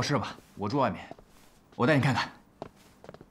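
A young man speaks nearby with animation.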